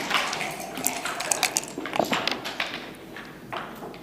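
Dice rattle inside a shaken cup.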